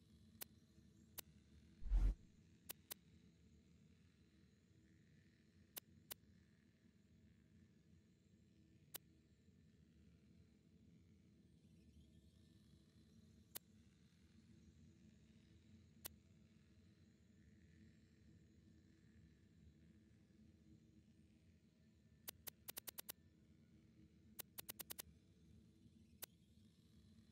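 Short soft clicks tick now and then as a game menu selection moves.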